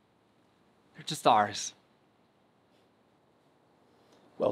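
A man speaks briefly with animation nearby.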